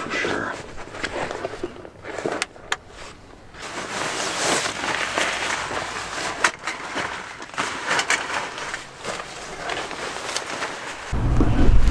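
A man rustles through a bag close by.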